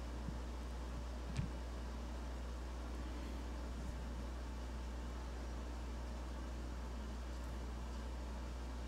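A marker pen scratches softly on paper.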